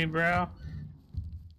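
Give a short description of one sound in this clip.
A large creature growls low.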